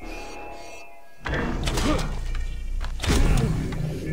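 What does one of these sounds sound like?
A bowstring twangs as an arrow is shot.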